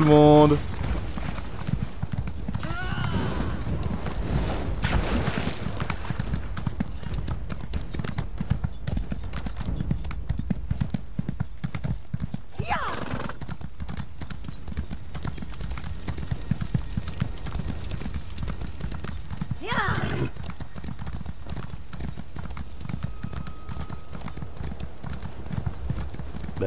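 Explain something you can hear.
A horse gallops, its hooves pounding steadily on the ground.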